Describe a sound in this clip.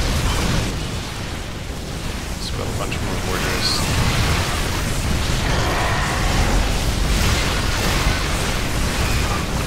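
Laser weapons zap and crackle rapidly in a loud battle.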